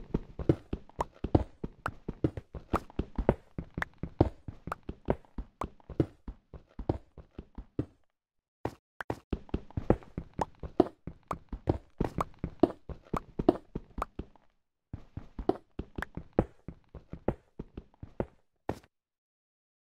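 A pickaxe strikes stone blocks in quick, repeated taps.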